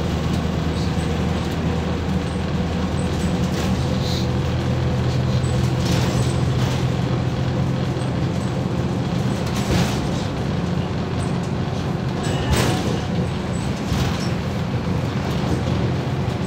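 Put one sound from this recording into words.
The body of a moving bus rattles and clatters.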